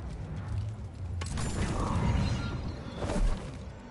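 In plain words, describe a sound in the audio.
A heavy metal mechanism grinds and clunks into place.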